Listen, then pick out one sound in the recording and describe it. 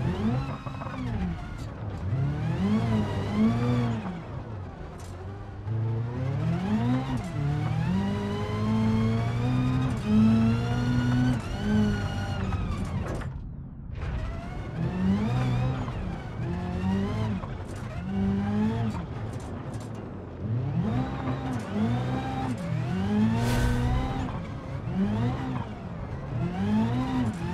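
A car engine revs hard, rising and falling in pitch as gears shift.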